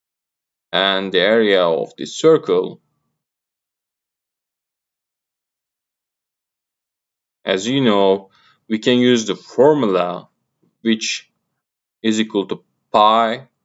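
A man explains calmly, close to a microphone, with pauses between phrases.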